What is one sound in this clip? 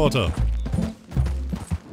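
A horse's hooves thud on grass at a trot.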